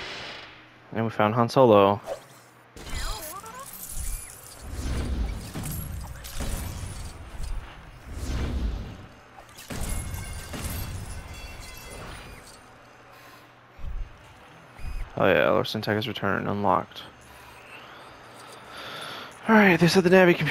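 A small robot chirps and warbles in bright electronic beeps.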